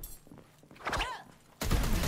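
A whip cracks and lashes through the air.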